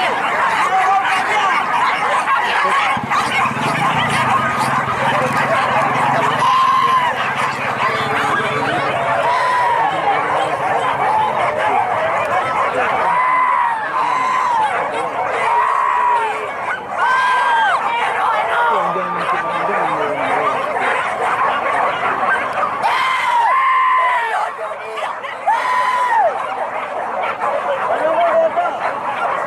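Dogs bark and bay repeatedly outdoors.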